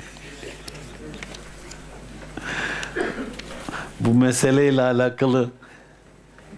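An elderly man laughs.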